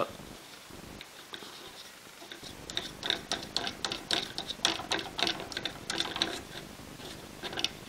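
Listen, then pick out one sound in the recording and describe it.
Small parts click and tap against a hard board as they are fitted by hand.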